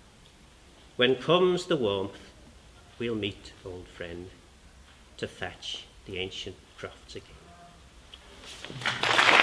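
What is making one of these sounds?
A middle-aged man reads out calmly, close by.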